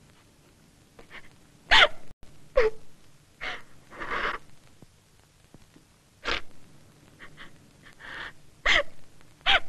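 A woman sobs and wails close by.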